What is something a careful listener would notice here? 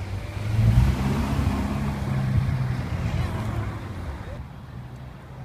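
A sports car engine rumbles loudly as it pulls away and fades.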